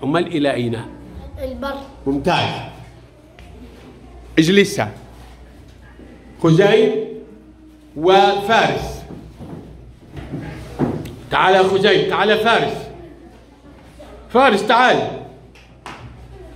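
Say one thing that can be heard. A young boy speaks close by in short, lively bursts.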